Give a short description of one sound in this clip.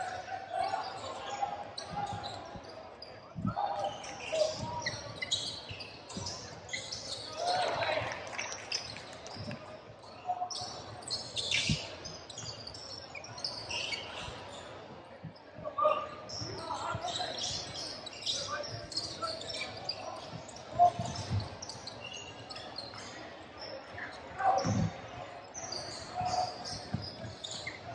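Young players shout to each other across the hall.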